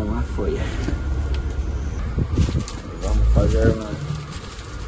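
A young man talks close to a microphone.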